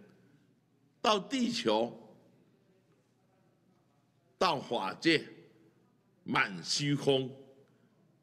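An elderly man speaks slowly and deliberately into a microphone, in short phrases with pauses.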